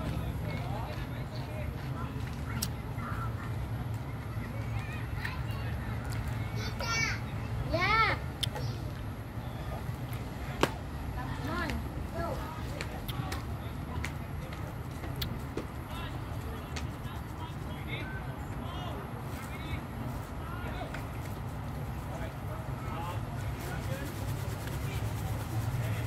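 Young children shout and call out in high voices outdoors.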